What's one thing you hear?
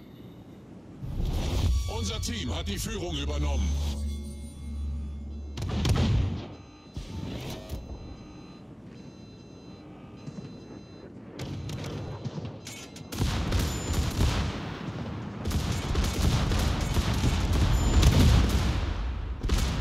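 A battleship's guns fire in deep booming salvos.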